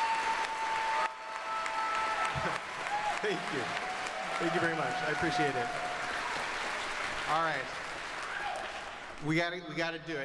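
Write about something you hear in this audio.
A large audience cheers and applauds in a big hall.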